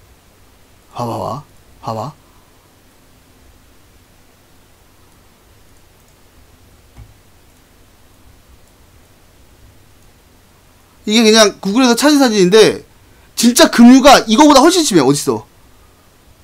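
A young man speaks close to a microphone with animation.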